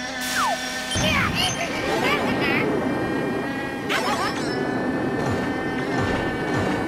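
Bright electronic music plays.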